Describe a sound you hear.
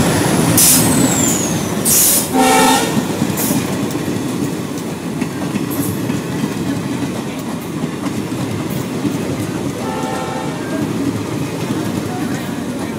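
A passenger train rushes past at speed, its wheels clattering over the rail joints.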